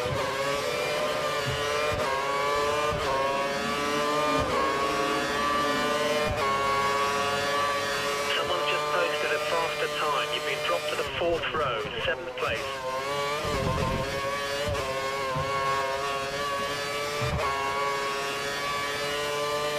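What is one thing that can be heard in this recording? A racing car engine screams at high revs, climbing in pitch and dropping sharply with each gear change.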